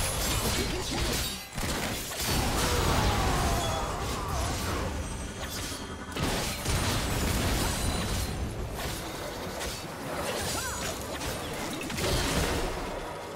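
Sword strikes and magic blasts hit in quick succession.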